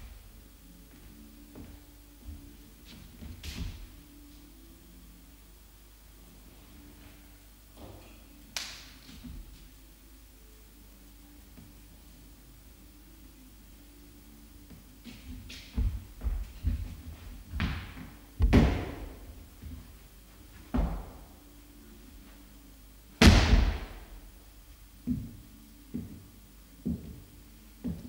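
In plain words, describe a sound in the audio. Footsteps knock and scuff on a wooden floor in a large echoing room.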